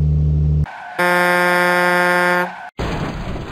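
A truck horn blares loudly.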